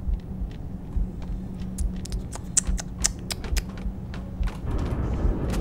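Footsteps clank on a hard metal floor.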